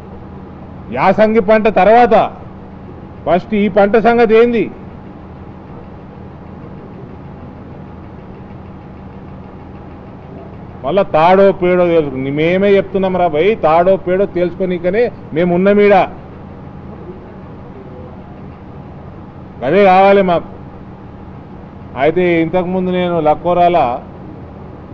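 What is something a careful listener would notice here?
A man speaks with animation into a nearby microphone, in bursts with pauses.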